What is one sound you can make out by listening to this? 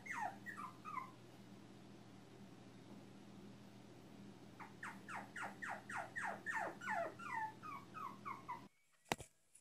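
Two cats trill and chirp at each other.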